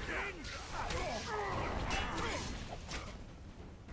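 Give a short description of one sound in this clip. A burst of fire roars.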